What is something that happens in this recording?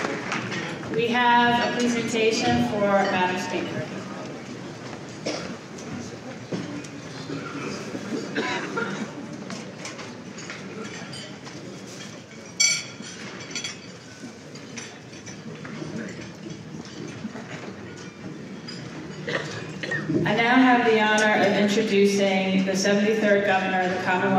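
A woman speaks calmly into a microphone, heard over loudspeakers in a large hall.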